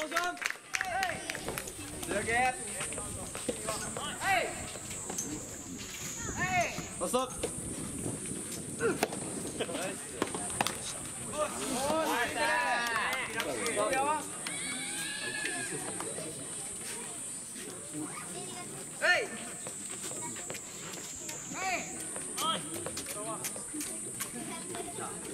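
Rackets strike a tennis ball with sharp pops.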